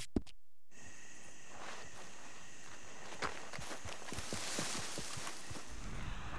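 Footsteps crunch and rustle through dry grass and dirt.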